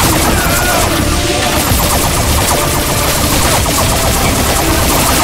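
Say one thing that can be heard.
Gunfire and laser blasts crackle rapidly in a battle.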